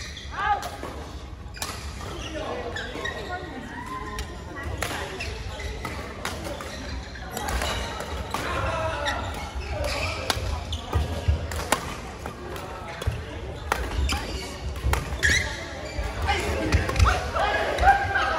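Shuttlecocks are struck with sharp pops of rackets, over and over.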